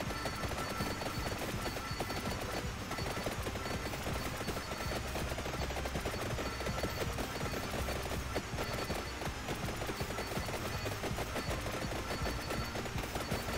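Rapid electronic game sound effects of attacks and hits crackle constantly.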